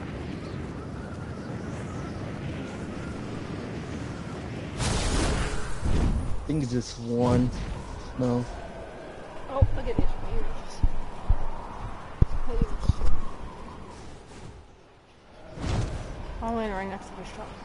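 Wind rushes past a glider in flight.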